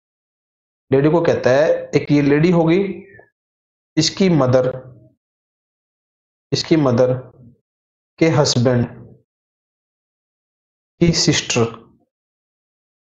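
A man explains calmly into a close microphone, in short bursts with pauses.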